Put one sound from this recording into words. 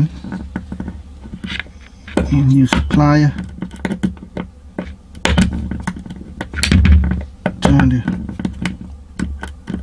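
Metal pliers click and scrape against a small metal part.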